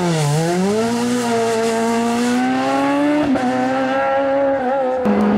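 A rally car engine roars loudly at high revs, rising in pitch as the car accelerates away.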